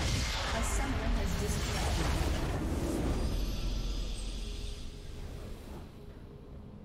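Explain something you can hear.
A structure explodes with a deep rumbling boom.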